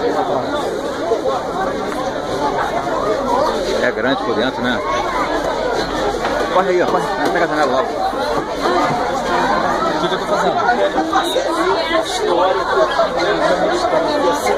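A crowd of men and women chatter all around, close by and overlapping.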